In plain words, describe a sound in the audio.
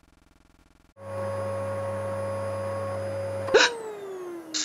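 A vacuum cleaner hums steadily.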